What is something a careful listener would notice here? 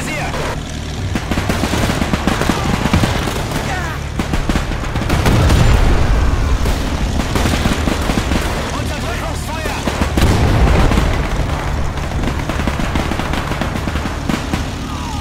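A tank engine rumbles and clanks steadily.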